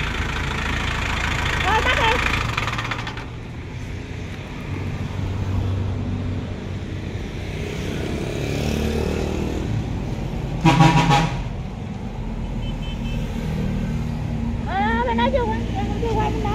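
A diesel engine idles with a steady low rumble close by.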